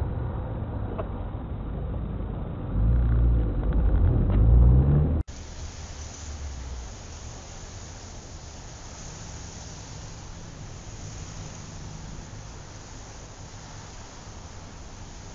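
A car engine rumbles from inside a moving car.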